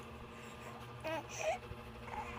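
A baby coos softly, close by.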